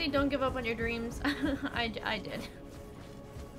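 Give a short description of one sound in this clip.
A young woman talks with animation into a headset microphone.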